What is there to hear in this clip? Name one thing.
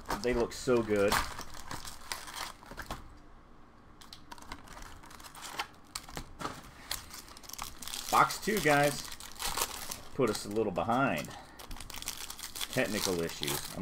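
Foil card wrappers crinkle and rustle as hands tear them open.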